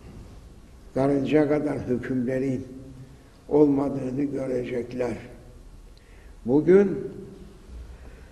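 An elderly man speaks slowly and solemnly in a large echoing hall, in short phrases.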